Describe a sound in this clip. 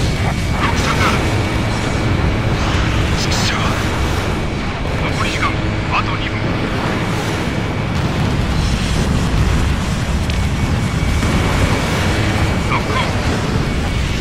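Missiles whoosh away with short hisses.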